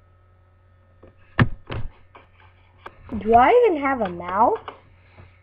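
A young boy speaks close to a microphone with animation.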